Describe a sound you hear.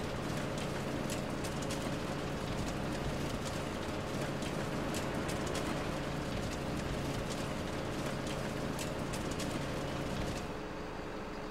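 A wood chipper grinds and crackles as it shreds wood.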